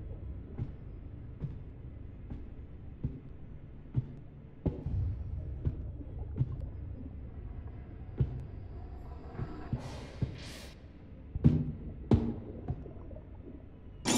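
Footsteps clank slowly on a metal floor, in a hollow, echoing space.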